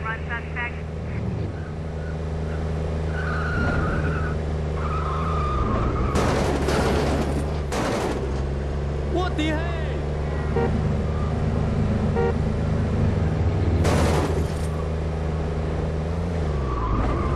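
A car engine hums as a convertible cruises along a street.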